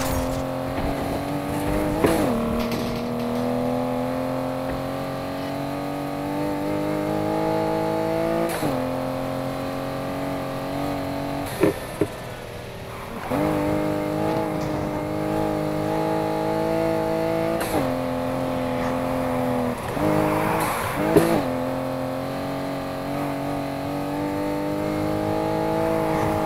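A car engine roars at high revs, rising in pitch and dropping with each gear change.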